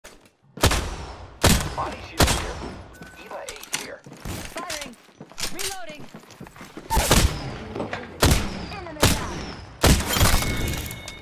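Loud gunshots blast one at a time, each with a short echoing tail.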